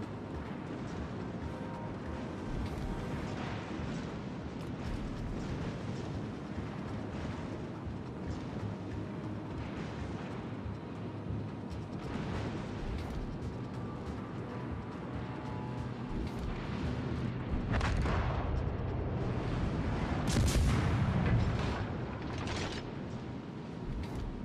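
A ship's engine rumbles low and steady as the hull churns through water.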